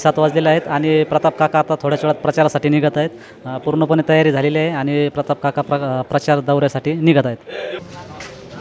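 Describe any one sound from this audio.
A man speaks steadily into a microphone close up.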